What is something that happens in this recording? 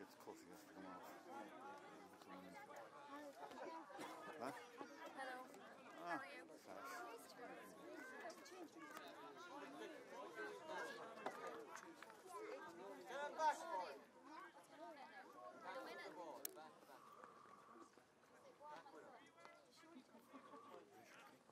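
Several men chat casually close by, outdoors.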